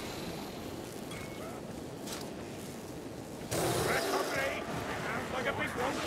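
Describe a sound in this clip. A sword swishes and slashes through flesh.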